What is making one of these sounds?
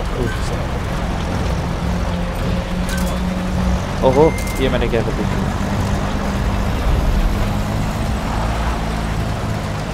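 Tyres crunch over a dirt road.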